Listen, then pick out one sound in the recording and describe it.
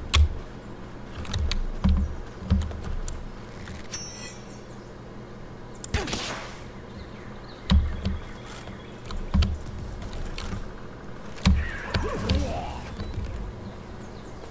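Heavy footsteps thud on the ground.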